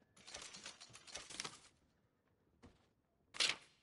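A paper page rustles as it turns.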